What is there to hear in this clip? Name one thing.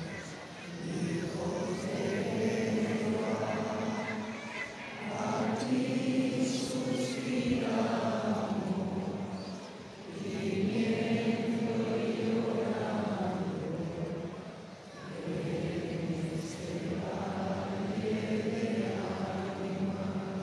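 A large crowd sings together outdoors in long, swelling phrases.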